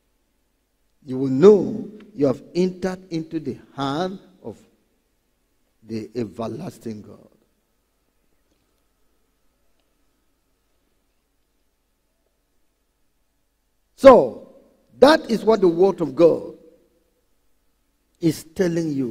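A man speaks with animation into a microphone, in pauses.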